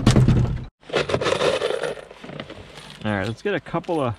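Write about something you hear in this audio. Screws rattle inside a small plastic box.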